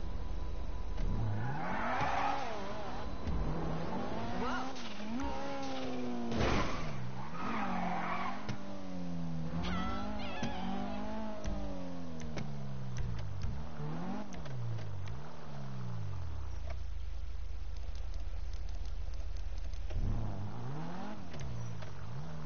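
A car engine revs up and down, rising and falling in pitch as the car speeds up and shifts gears.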